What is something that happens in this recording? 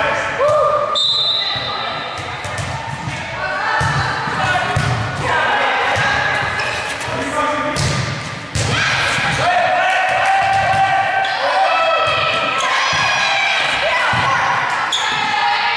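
A volleyball thuds off players' arms and hands.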